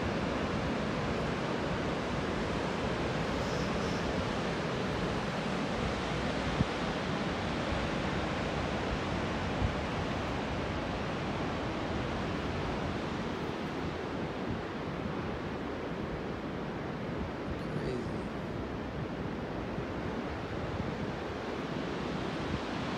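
Wind blows steadily across an open hillside outdoors.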